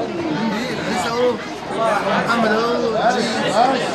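A young man speaks close up.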